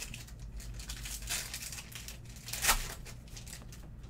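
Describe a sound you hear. Card wrappers rustle and crinkle in hands.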